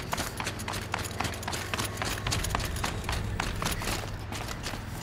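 Footsteps run quickly over rocky ground.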